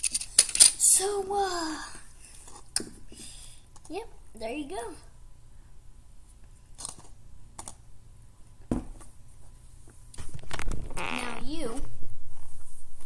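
A child speaks briefly and close by.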